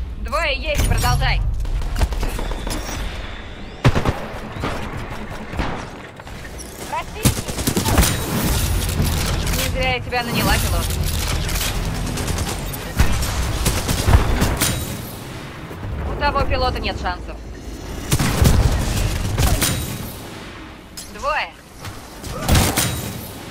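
Rapid gunfire crackles and bangs in quick bursts.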